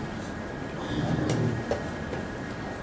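A chess piece is set down on a board with a soft knock.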